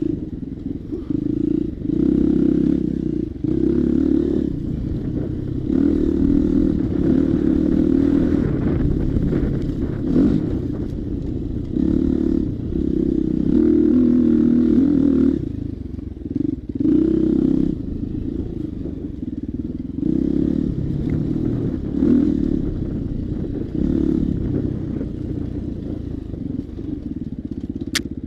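A motorbike engine drones and revs up and down.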